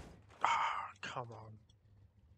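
A car thuds against a barrier.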